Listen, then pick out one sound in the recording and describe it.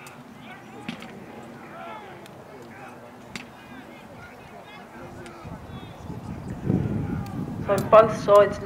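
A crowd of men shout and call out at a distance.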